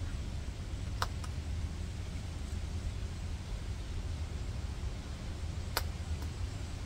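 Pepper stems snap sharply as a plant is picked.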